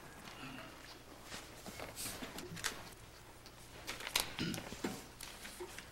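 A large board scrapes and rattles against a wall as a man hangs it.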